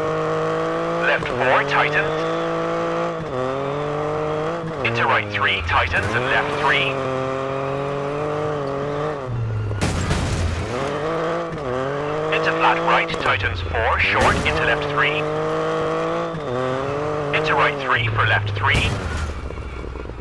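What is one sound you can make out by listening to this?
Tyres skid and squeal on tarmac in the corners.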